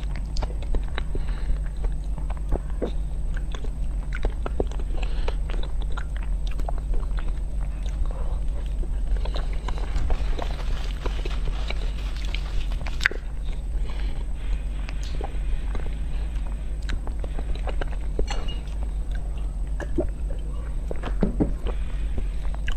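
A young woman chews soft chocolate cake close to a microphone, with wet, sticky mouth sounds.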